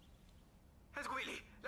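A teenage boy speaks quietly into a phone up close.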